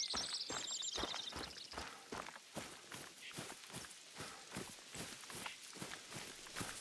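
Footsteps swish through tall grass at a steady walking pace.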